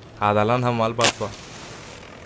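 A lighter clicks once.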